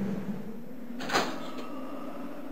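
A door handle clicks and a door opens.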